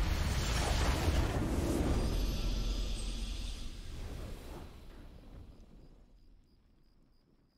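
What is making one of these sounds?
A triumphant game fanfare swells loudly and then fades away.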